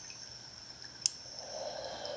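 Scissors snip once close to a microphone.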